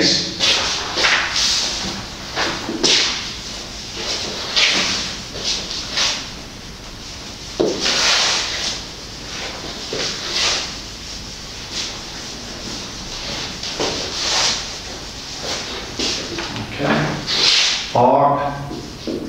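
A middle-aged man speaks calmly and clearly, lecturing.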